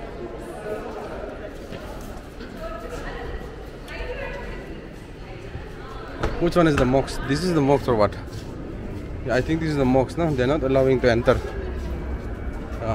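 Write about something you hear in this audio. People chatter softly in the distance outdoors.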